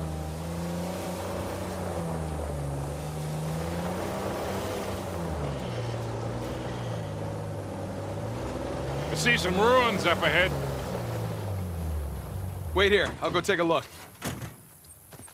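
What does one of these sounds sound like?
An engine rumbles and revs as an off-road vehicle drives over rough ground.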